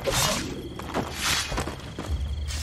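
A sword clashes against a blade in a fight.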